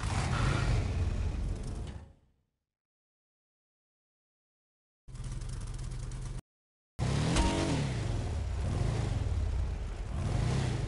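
A buggy engine idles and revs.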